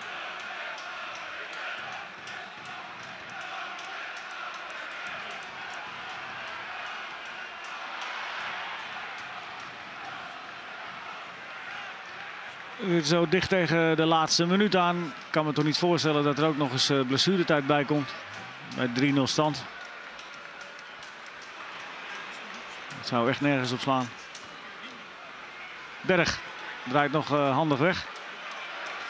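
A large stadium crowd murmurs and chants in the distance.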